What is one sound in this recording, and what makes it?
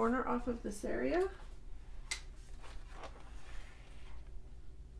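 Paper rustles and slides as a sheet is handled.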